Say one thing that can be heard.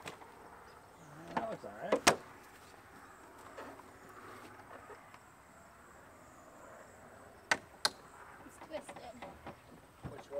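Straps and buckles rattle and click against a roof rack.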